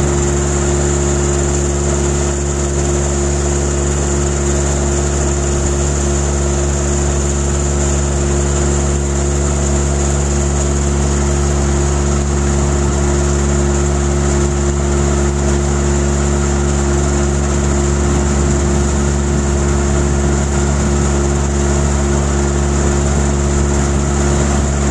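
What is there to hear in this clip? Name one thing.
A conveyor machine runs with a loud, steady droning hum.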